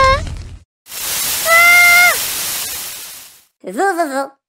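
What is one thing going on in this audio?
A fire extinguisher sprays with a loud hiss.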